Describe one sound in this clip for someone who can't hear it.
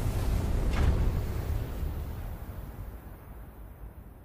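Steam hisses loudly from vents.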